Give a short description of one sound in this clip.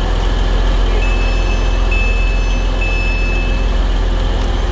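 A train door beeps repeatedly.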